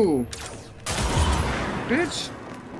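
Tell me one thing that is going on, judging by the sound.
Glass shatters.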